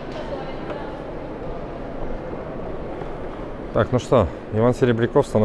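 People murmur in a large echoing hall.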